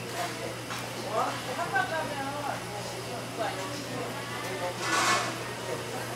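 A knife scrapes and slices through cooked meat.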